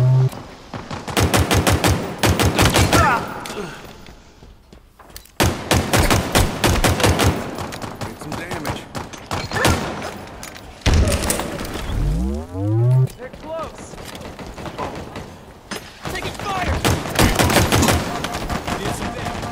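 A pistol fires rapid bursts of shots.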